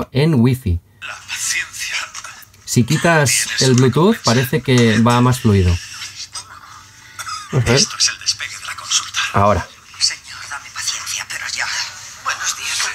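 A small watch speaker plays tinny voices and music.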